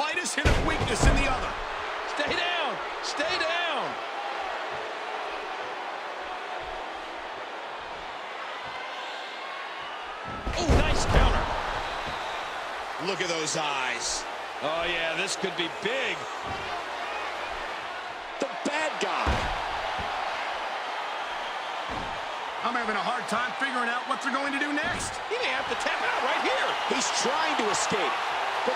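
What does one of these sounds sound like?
A crowd cheers steadily throughout a large hall.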